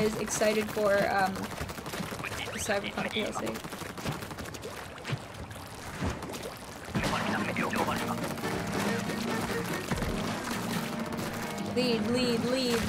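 Ink splatters and squishes in bursts.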